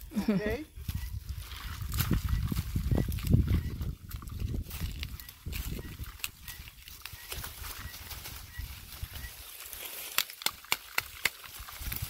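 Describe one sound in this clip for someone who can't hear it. Dry corn stalks rustle and crackle.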